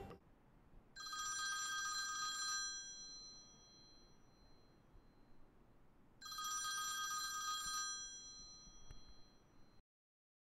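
A phone rings with a chiming tone.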